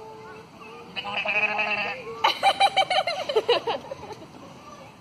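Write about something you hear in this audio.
A sheep bleats loudly several times.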